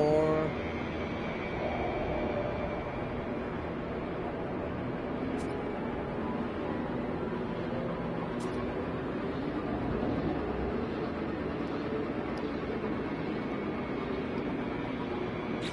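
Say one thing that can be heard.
A spaceship engine roars and rumbles steadily.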